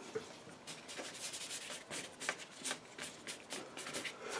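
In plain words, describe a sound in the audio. A paintbrush swishes softly across paper.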